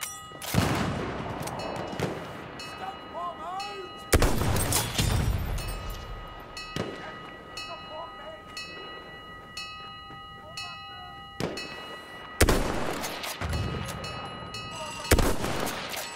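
Loud rifle shots crack and echo across open ground.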